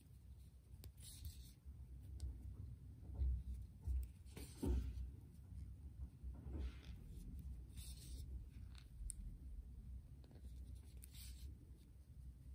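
Yarn rustles softly as it is pulled through stitches.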